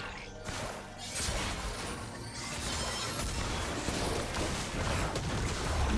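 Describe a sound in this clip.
Game spell effects whoosh and crackle during a fast battle.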